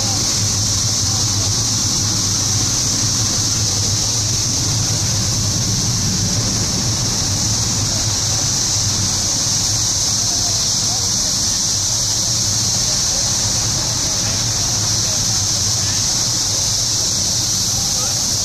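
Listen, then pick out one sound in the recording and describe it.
Wind rustles the leaves of trees outdoors.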